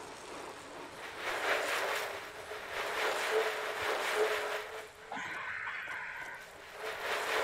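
A stationary bike trainer whirs steadily.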